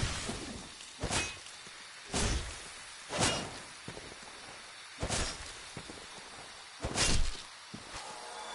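A sword swishes and strikes a creature again and again.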